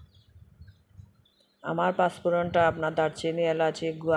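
A glass lid clinks onto a pan.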